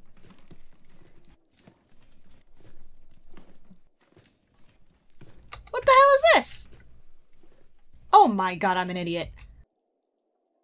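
A young woman speaks into a microphone, at times loudly and with animation.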